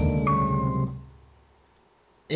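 A keyboard chord rings out and fades away.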